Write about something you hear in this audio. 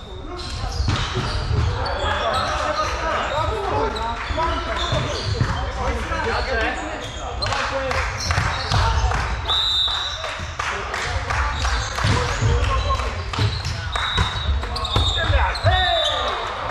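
A volleyball thuds as players hit it.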